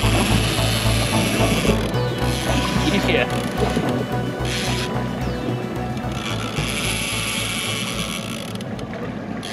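A fishing reel clicks and whirs as its line is wound in.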